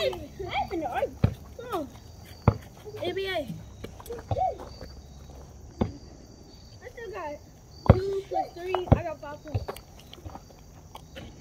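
Young boys talk and call out to each other outdoors.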